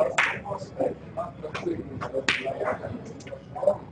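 A snooker cue strikes the cue ball with a sharp click.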